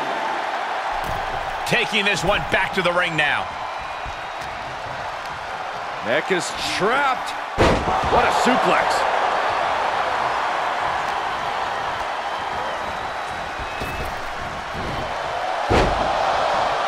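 Heavy thuds land as wrestlers strike and slam each other.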